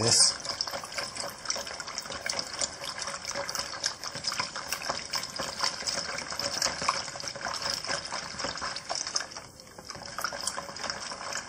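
Hands swish and squelch through water and rice in a plastic bowl.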